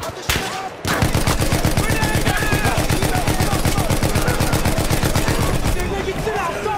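A machine gun fires in a rapid, steady burst.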